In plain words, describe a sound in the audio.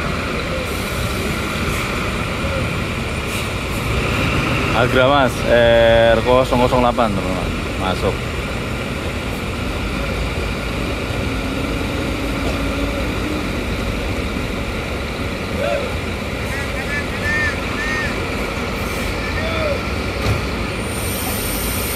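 Bus engines idle with a low rumble.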